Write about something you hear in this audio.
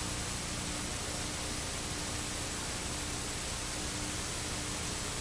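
Loud television static hisses steadily.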